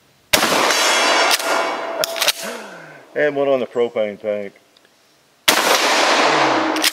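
A shotgun fires loud blasts that echo outdoors.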